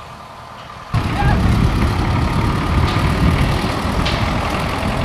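A rail vehicle rattles and rumbles loudly along the tracks nearby.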